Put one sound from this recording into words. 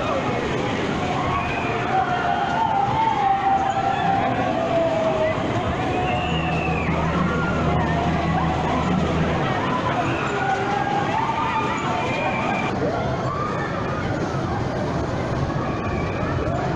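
A fairground ride whirs and rumbles as it spins.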